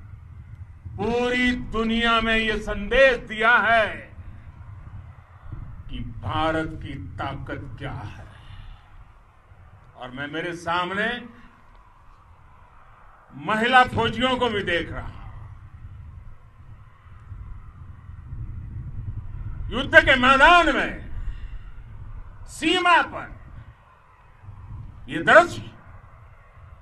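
An elderly man speaks forcefully into microphones outdoors, in bursts with pauses.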